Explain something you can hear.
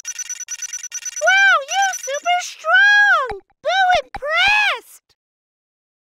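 Musical tones sweep up and down as game results tally.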